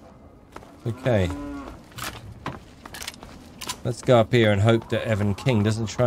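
A shotgun clicks and clacks as it is loaded.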